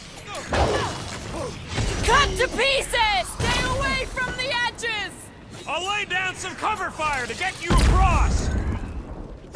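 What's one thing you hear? Energy blasters fire in loud, sharp bursts.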